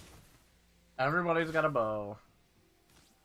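A man speaks loudly and briefly into a microphone.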